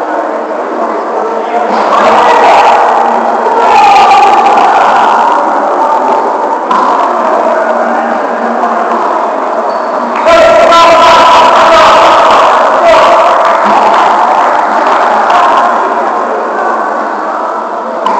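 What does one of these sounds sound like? Men call out and talk in a large echoing gymnasium.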